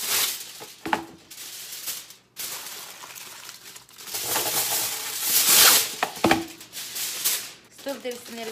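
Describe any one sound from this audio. Foil crinkles and rustles loudly.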